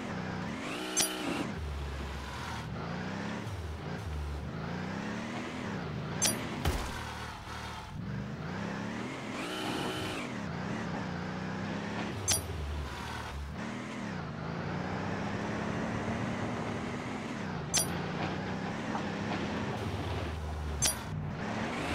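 A short high chime sounds now and then.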